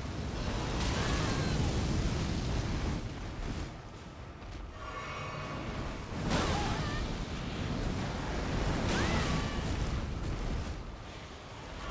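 Fiery explosions boom and roar.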